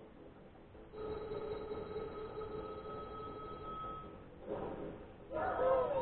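Video game music and sound effects play from a television.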